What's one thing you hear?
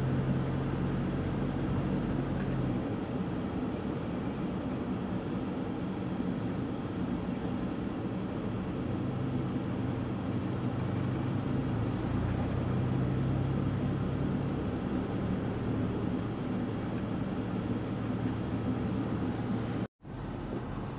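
Tyres roar on a road.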